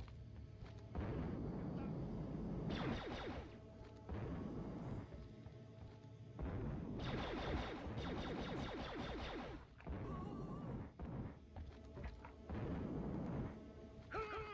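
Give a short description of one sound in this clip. Jet thrusters roar in bursts.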